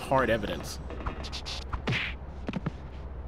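Punches land with sharp thuds in a fight.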